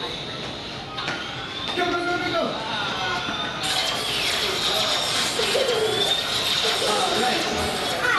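Toy blasters make electronic zapping and beeping sounds.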